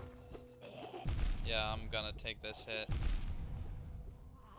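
An electric crackle bursts out with a heavy rumbling impact.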